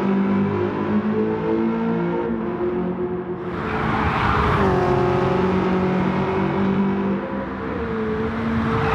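A sports car engine roars steadily, shifting pitch as it accelerates and slows.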